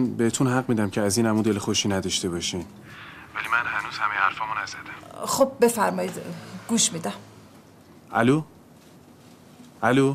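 A man talks on a phone, tense and close.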